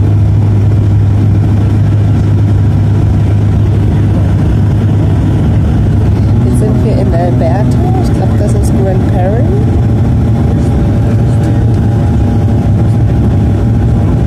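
Aircraft engines drone loudly and steadily inside the cabin.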